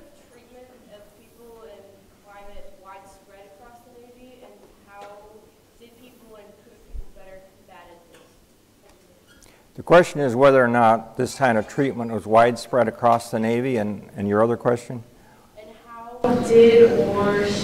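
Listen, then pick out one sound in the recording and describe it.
An elderly man speaks calmly into a microphone in a room with a slight echo.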